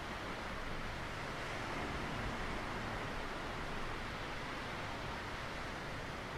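Waves wash gently onto a rocky shore.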